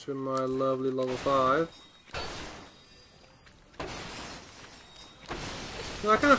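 Wooden crates smash and shatter.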